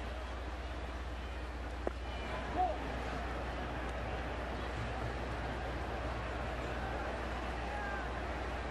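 A large crowd murmurs steadily outdoors.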